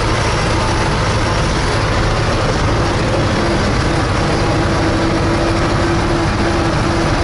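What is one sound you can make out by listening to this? Tyres rumble on a gravel road.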